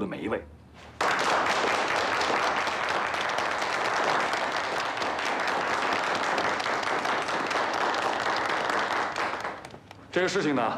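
A group of people applaud together.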